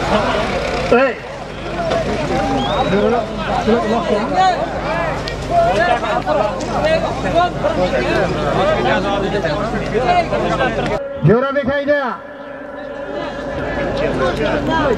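A large crowd of men shouts and calls out outdoors.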